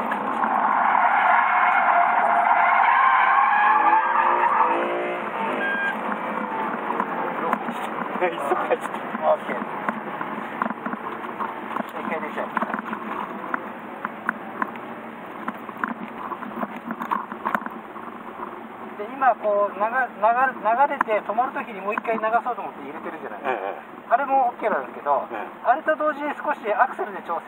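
A car engine roars loudly under hard acceleration, then drones on.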